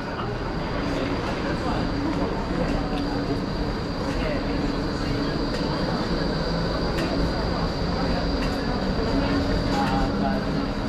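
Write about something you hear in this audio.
Traffic rumbles along a busy city street.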